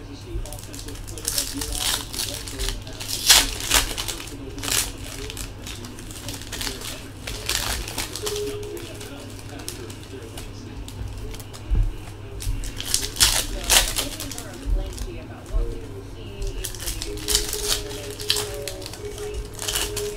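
Plastic card sleeves and wrappers rustle and crinkle as cards are handled.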